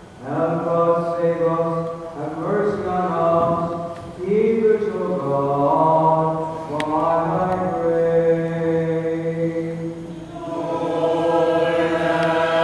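A group of men and women sing together in a slow chant, echoing in a large hall.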